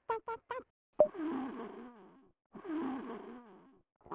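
A cartoon character snores softly in a sleepy rhythm.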